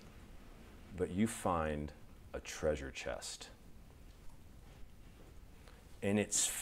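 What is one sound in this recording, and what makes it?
A man speaks calmly into a clip-on microphone, in short phrases with pauses.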